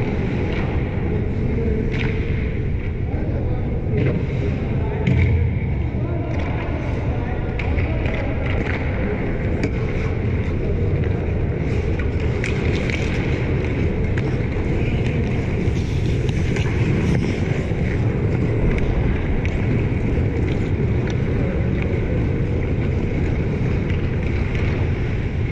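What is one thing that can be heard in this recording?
Skate blades scrape and carve across ice in a large echoing arena.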